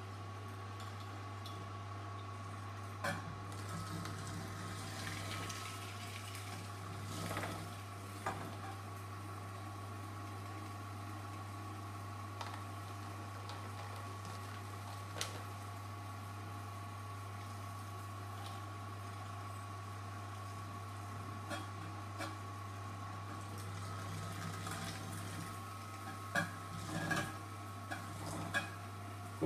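A juicer motor hums steadily.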